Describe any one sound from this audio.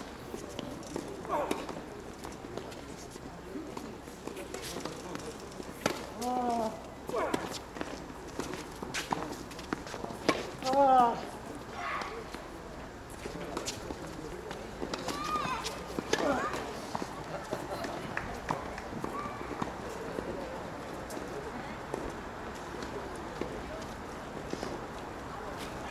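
Tennis balls are struck with rackets, with sharp pops back and forth.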